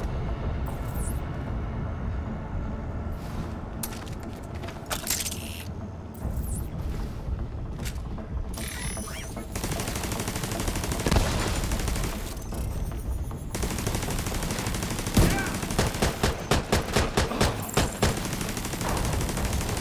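A rifle fires rapid shots in an echoing hall.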